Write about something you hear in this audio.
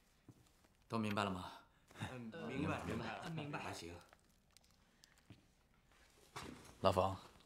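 A young man speaks with animation to a group.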